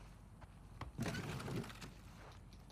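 Objects rustle and clatter as a drawer is rummaged through.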